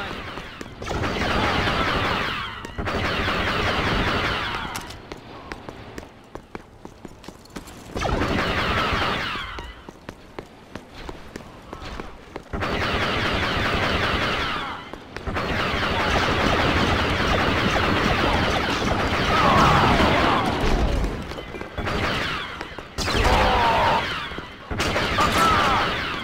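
Blaster rifles fire in rapid bursts.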